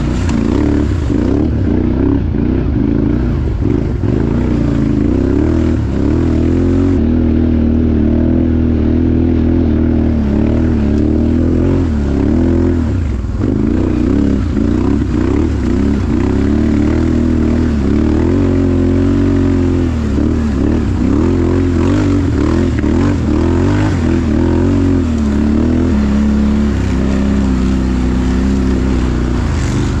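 Tyres crunch over dry leaves and dirt.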